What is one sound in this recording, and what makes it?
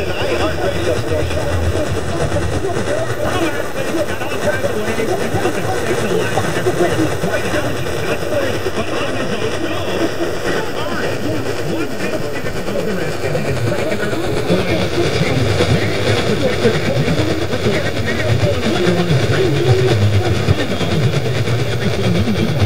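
A radio plays a distant station through heavy static and crackle.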